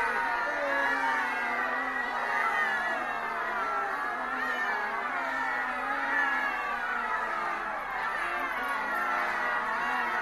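A choir of men and women sings together loudly outdoors.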